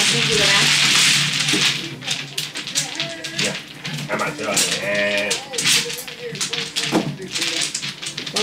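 A man talks and laughs nearby.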